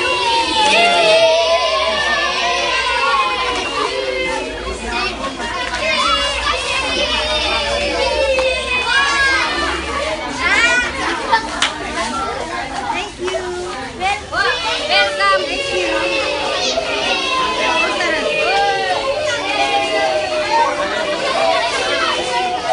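Children sing loudly together.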